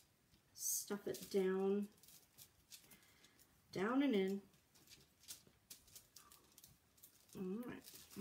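A woman talks calmly and close by, in short bursts.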